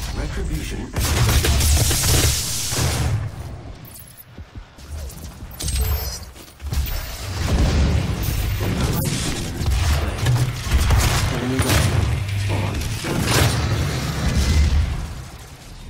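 Explosions rumble and crackle.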